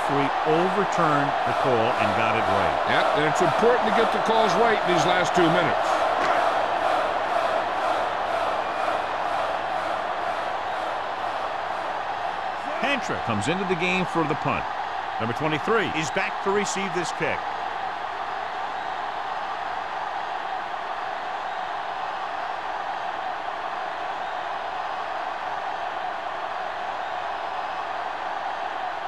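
A stadium crowd roars in a steady wash of noise.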